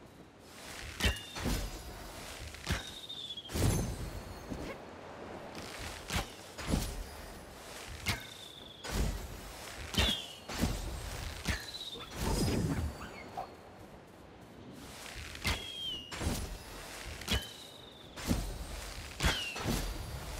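A bow twangs as arrows are loosed again and again.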